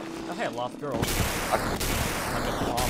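A blaster fires with a loud, rushing hiss.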